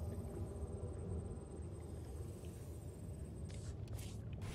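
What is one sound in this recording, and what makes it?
A scanning device hums with a low, steady electronic drone.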